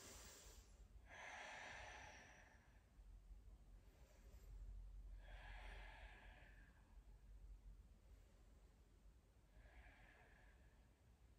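A young woman breathes out slowly and audibly.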